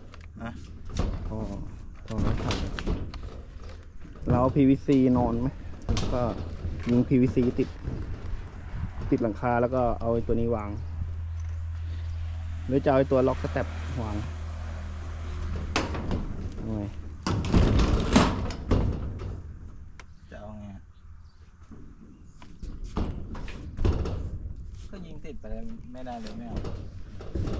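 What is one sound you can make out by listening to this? Footsteps thud on a metal roof.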